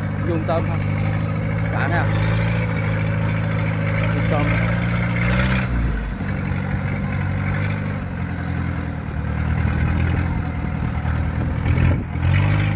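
A diesel combine harvester on crawler tracks drives along, its engine droning.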